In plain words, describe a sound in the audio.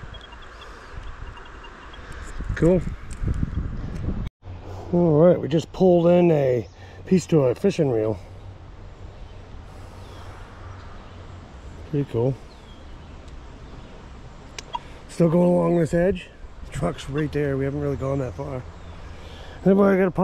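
A shallow stream trickles and burbles close by.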